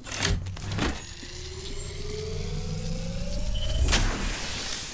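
An electric device charges up with a rising hum.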